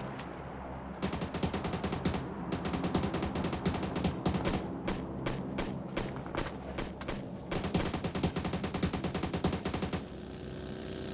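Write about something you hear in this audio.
Quick rustling steps move through dry grass.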